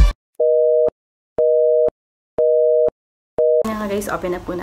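A countdown beeps four times, once each second.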